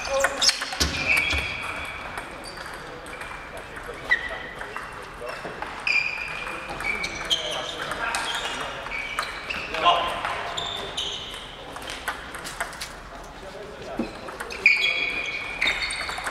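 Table tennis balls click against paddles and tables in a large echoing hall.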